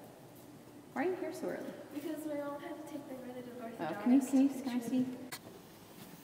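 A teenage girl talks close by.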